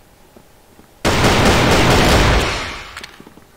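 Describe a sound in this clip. A pistol fires a loud shot.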